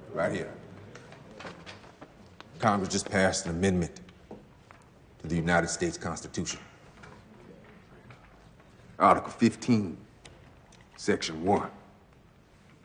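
A man speaks in a deep, solemn voice, addressing a room, with a slight echo.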